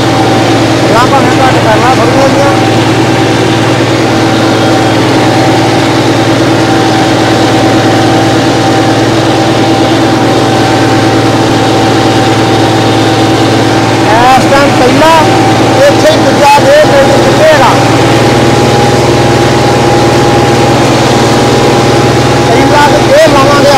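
A tractor engine runs with a steady low rumble.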